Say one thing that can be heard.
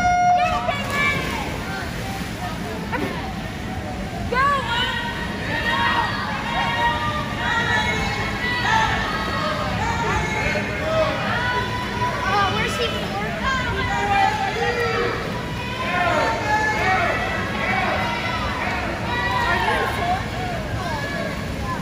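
Swimmers splash and churn through the water.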